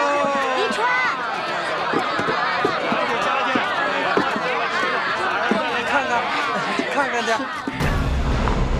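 A crowd of people chatter excitedly.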